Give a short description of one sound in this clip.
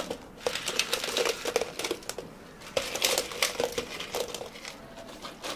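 Ice cubes clatter and rattle as they are tipped into a plastic cup.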